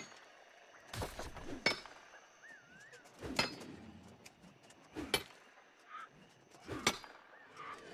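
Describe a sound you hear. A pickaxe strikes rock with sharp, evenly spaced clinks.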